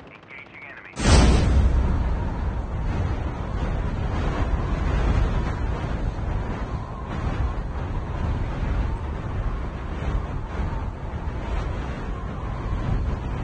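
Wind rushes loudly and steadily.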